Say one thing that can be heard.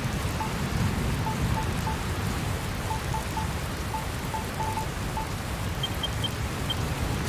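Short electronic menu beeps blip in quick succession.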